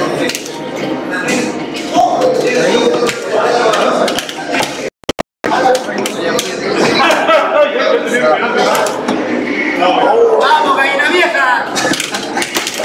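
Arcade buttons click and a joystick rattles under quick hands.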